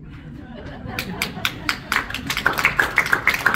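People clap their hands in applause.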